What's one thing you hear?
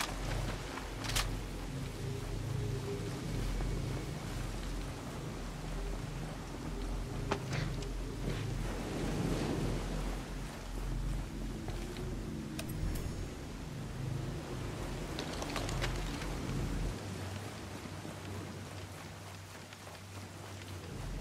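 Footsteps crunch softly over grass and gravel.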